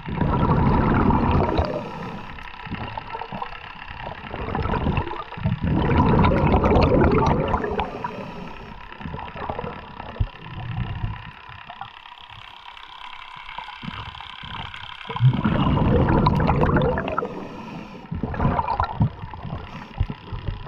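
A diver breathes out in bubbling bursts underwater, muffled and close.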